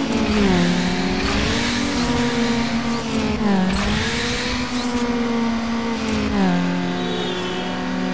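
A car engine roars loudly, revving up and dropping in pitch with each gear change.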